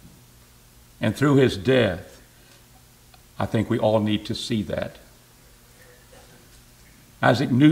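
An older man speaks calmly and expressively into a microphone, in pauses.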